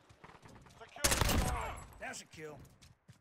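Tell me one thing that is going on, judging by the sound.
A rifle fires a loud, echoing shot.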